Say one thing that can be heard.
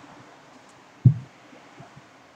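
A glass is set down on a wooden table with a dull knock.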